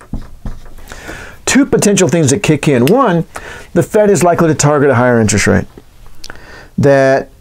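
A middle-aged man speaks calmly and clearly, close to a microphone.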